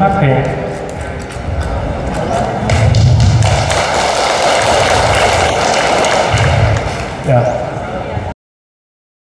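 A man speaks into a microphone through loudspeakers in a large echoing hall.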